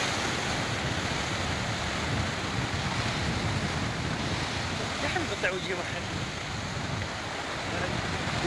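Waves crash and surge over rocks with a steady roar.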